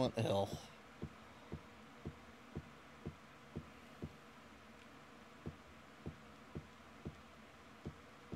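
Footsteps tread steadily across a floor.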